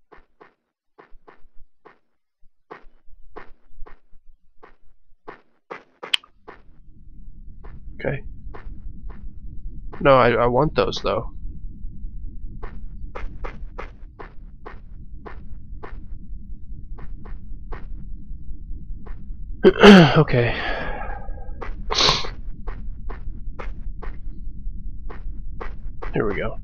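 Footsteps walk steadily over grass and ground.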